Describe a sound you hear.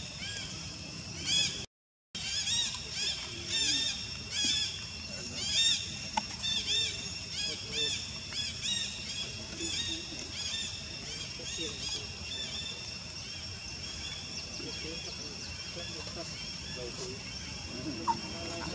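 Leaves and branches rustle as monkeys climb in a tree.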